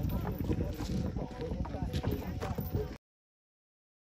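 A swing's metal chains creak and rattle.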